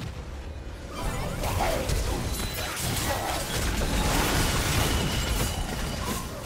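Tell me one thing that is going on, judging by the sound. Magic spells whoosh, crackle and burst in a fast, busy clash.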